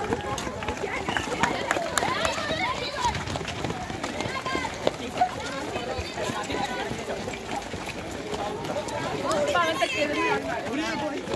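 Many footsteps shuffle and patter on pavement.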